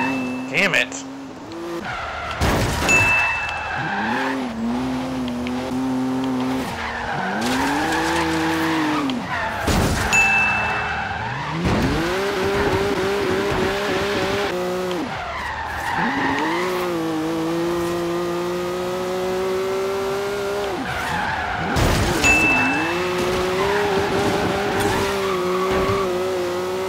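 A car engine revs hard, rising in pitch and dropping with each gear change.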